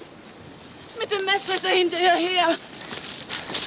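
A woman shouts loudly and urgently outdoors.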